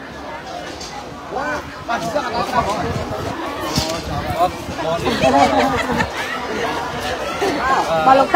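Voices of people chatter in the background outdoors.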